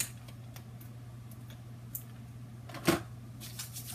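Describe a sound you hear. Small plastic items click and tap in a woman's hands.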